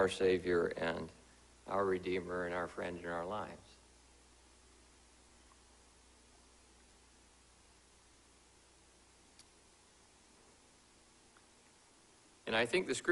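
A man speaks slowly and calmly through a microphone, with long pauses.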